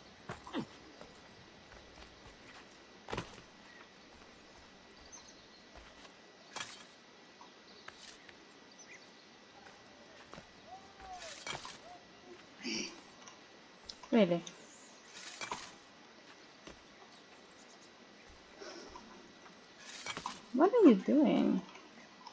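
Hands scrape and grip stone while climbing.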